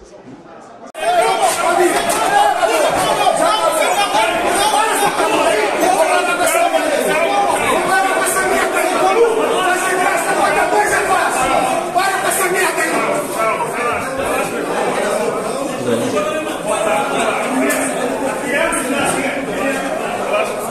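A crowd of men shout and argue heatedly close by.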